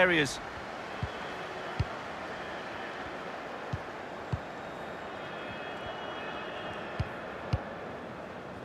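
A football is kicked with short dull thumps.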